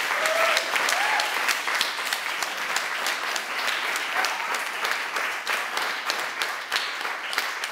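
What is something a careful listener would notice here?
A small audience claps steadily.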